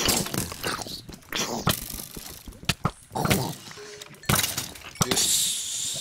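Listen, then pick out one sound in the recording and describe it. Sword blows thump against a monster.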